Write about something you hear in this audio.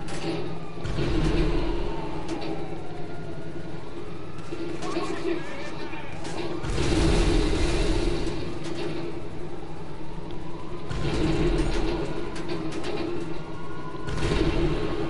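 Police sirens wail nearby, rising and falling.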